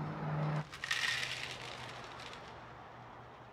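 Cereal pours into a bowl with a dry rattle.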